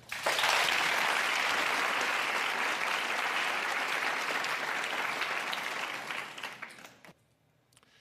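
An audience applauds loudly and then fades away.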